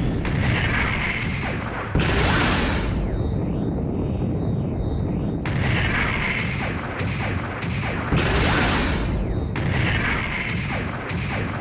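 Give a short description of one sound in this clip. A robot's heavy footsteps thud and clank.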